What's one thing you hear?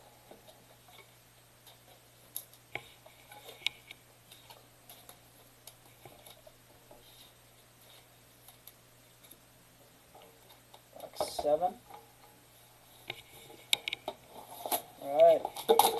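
Cards tap softly on a tabletop.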